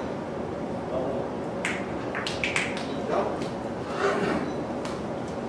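Billiard balls click against each other and thud off the cushions.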